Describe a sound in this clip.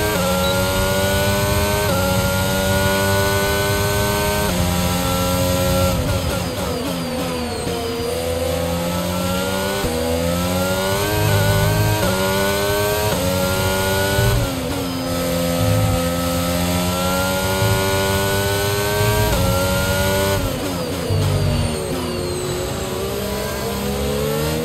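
A racing car engine screams at high revs, rising through each gear and dropping sharply at each shift.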